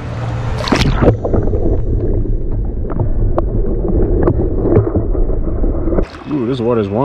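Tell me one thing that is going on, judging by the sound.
Water gurgles and rumbles, heard muffled from under the surface.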